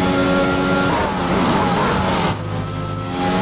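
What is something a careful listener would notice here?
A racing car engine winds down under braking, then builds up again.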